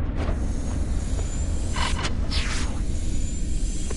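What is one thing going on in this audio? A launch pad whooshes as a figure is flung upward.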